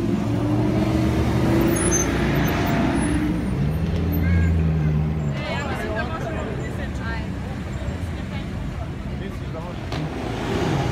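A sports car engine rumbles and revs as the car drives slowly past.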